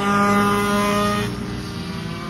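A go-kart engine buzzes loudly close by.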